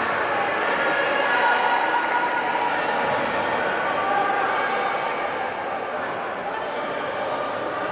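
A crowd murmurs and chatters steadily in a large echoing hall.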